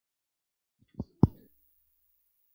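A microphone bumps and thuds twice.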